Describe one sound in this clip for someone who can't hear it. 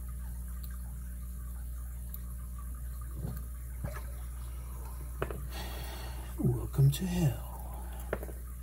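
Small metal tools click and scrape against a lock.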